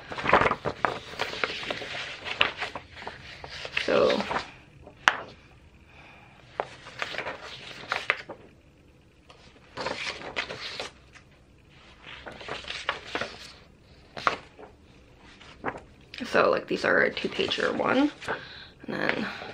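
Sheets of paper rustle in a woman's hands.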